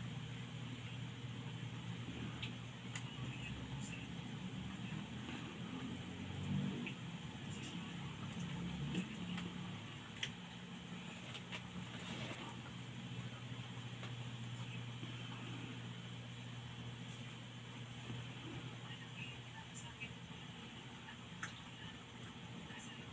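Small plastic clicks and taps come from a phone being handled and turned.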